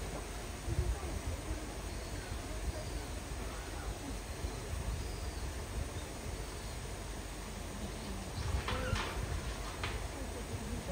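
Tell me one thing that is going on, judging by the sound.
An elephant knocks a rubber tyre against a metal gate with dull thumps and rattles.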